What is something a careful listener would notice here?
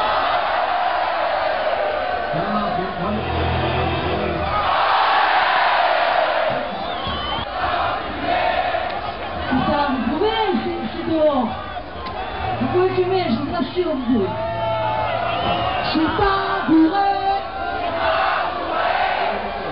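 A crowd sings along in chorus.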